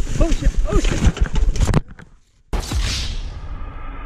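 A bicycle crashes with a thud.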